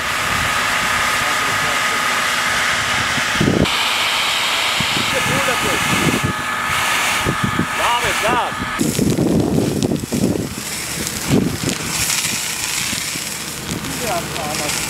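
Water sprays hard from a fire hose with a steady rushing hiss.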